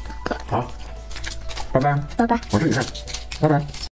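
Small candies rattle and clink as a boy's hands dig into them.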